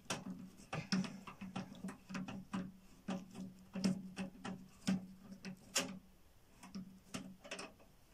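A screwdriver clicks and scrapes against plastic parts.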